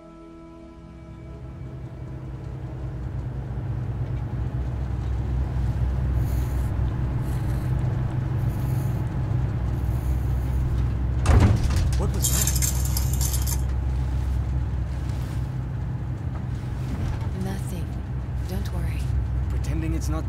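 An aircraft engine drones with a low, steady rumble that swells up at the start.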